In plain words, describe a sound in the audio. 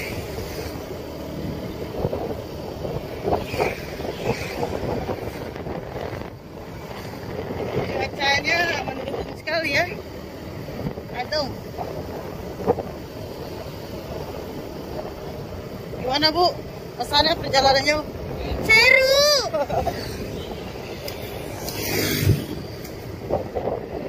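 A motorbike engine hums steadily close by.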